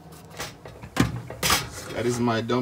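A metal pot lid clinks.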